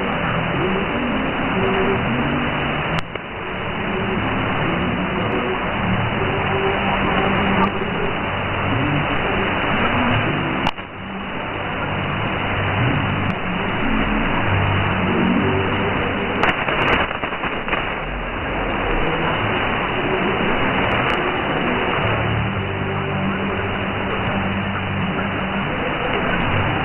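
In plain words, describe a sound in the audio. Shortwave radio static hisses and crackles steadily.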